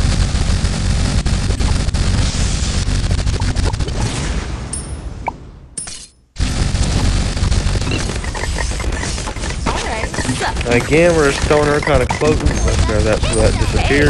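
Game sound effects pop and burst rapidly.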